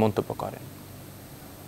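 A woman speaks sharply and with animation close by.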